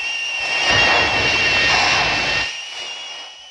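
Steam hisses from a pipe.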